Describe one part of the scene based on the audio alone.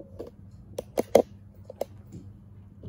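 A pen taps and squeaks on a board.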